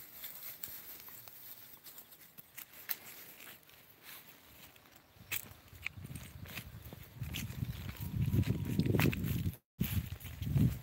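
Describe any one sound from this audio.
A dog walks through grass and dry leaves.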